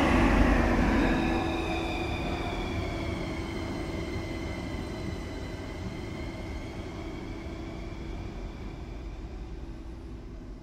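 A train's motor whines, falling in pitch as it pulls away.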